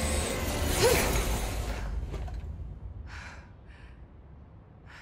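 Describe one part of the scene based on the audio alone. A loud machine whooshes and hums, then fades.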